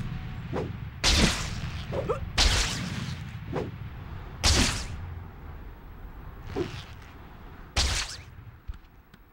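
Rushing whooshes sweep past as a figure swings through the air.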